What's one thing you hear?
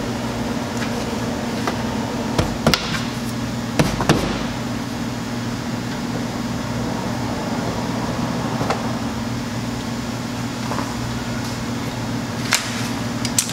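Plastic clips click and snap into place.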